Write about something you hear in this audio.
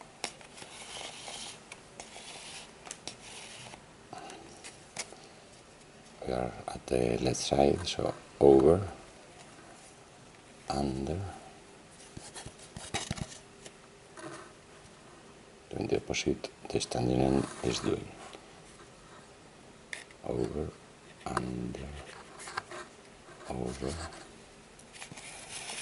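A cord rustles softly as it is wound around a cardboard tube.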